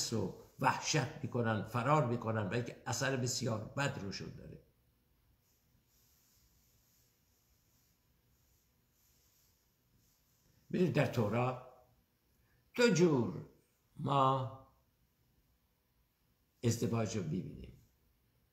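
An elderly man speaks calmly and close by, with long pauses.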